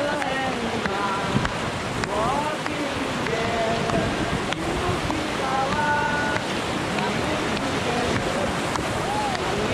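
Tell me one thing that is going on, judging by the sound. River rapids rush and roar loudly close by.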